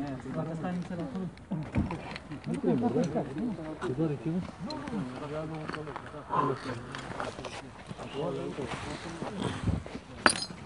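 A crowd of men talk and shout close by.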